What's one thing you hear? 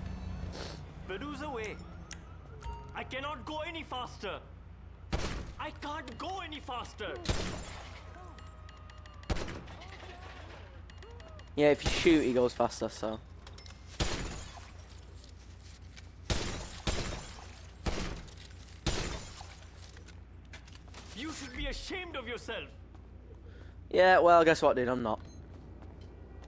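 A frightened man speaks quickly and pleads.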